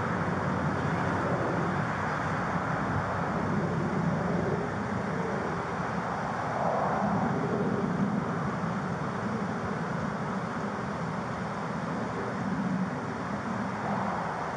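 Wind rumbles across a body microphone outdoors.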